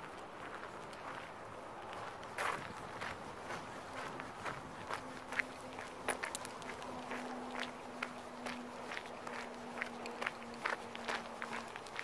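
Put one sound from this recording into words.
Footsteps crunch on gravel.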